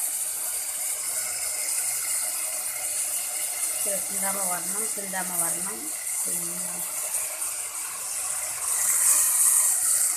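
Shredded cabbage tumbles into a sizzling pot.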